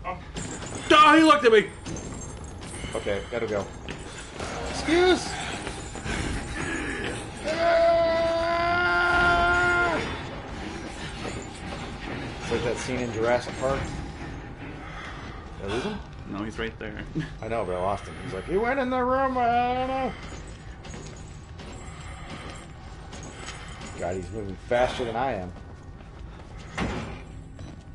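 A young man talks and exclaims excitedly, close to a microphone.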